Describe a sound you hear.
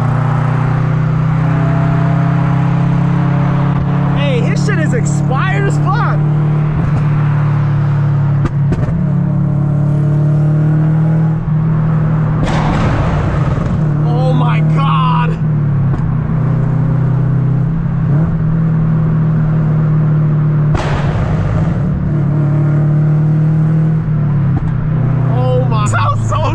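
A car engine hums loudly and steadily from inside the car.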